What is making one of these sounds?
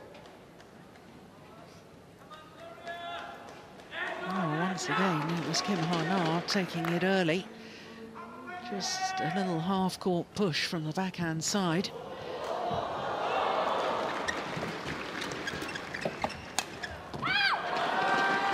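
Rackets strike a shuttlecock with sharp smacks.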